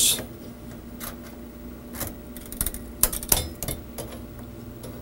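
Plastic wire connectors click and tap together in a hand.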